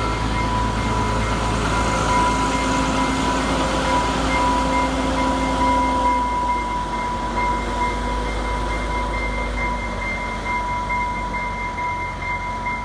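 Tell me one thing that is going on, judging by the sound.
A diesel truck engine drones as a rail vehicle passes close by.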